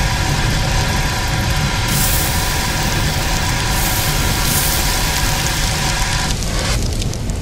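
Fire roars and crackles close by.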